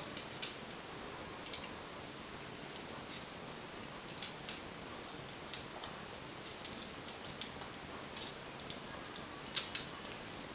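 A small dog crunches dry food.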